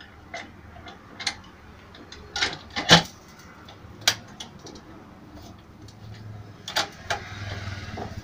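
Metal sieve pans clank and knock as a lid is fitted and clamped down.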